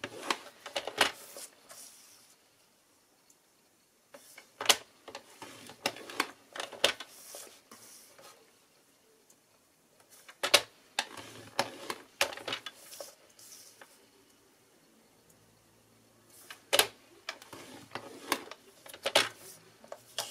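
Paper rustles and taps as it is shifted on a cutting board.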